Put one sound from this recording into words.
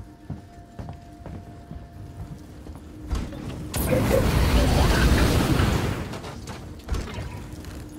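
Flames crackle and hiss on a burning figure.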